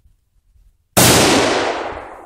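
A rifle fires a single loud shot outdoors, echoing away.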